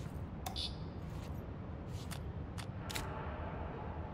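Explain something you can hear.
Short, soft menu clicks sound several times.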